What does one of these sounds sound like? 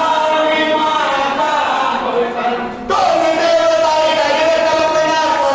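A group of women sings together in a reverberant hall.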